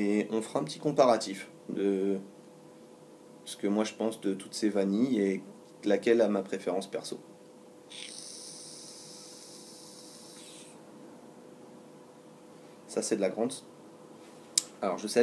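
A man talks calmly close up.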